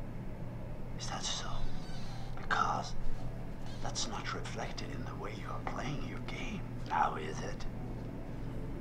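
A middle-aged man speaks in a low, calm voice.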